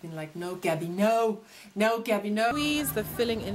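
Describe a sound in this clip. A young woman sings close by.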